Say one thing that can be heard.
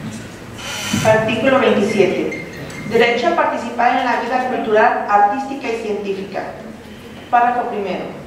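A woman speaks calmly into a microphone, heard through loudspeakers.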